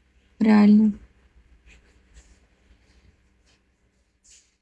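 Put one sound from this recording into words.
A young woman murmurs quietly close by.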